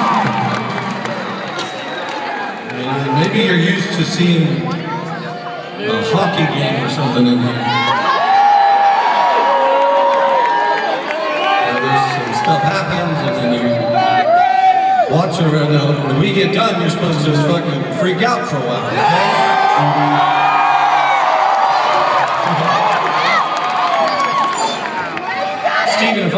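A singer sings into a microphone, heard loudly through loudspeakers.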